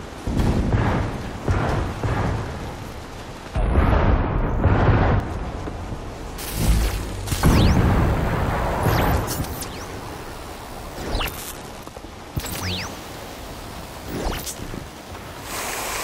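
A game character's powers whoosh and roar in sudden bursts.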